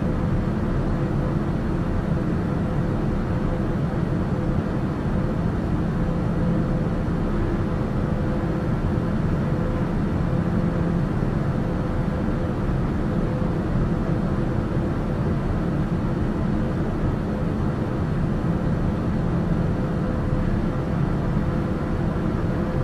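A single-engine turboprop drones in cruise, heard from inside the cockpit.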